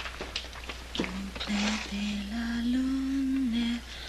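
A young woman hums a slow tune softly nearby.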